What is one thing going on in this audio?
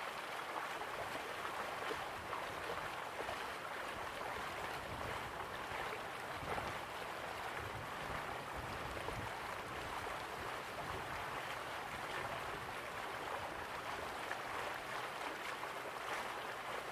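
A stream rushes over rocks.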